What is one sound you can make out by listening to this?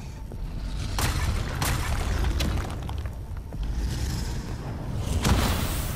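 Sharp energy blasts and hits crack in quick, loud bursts.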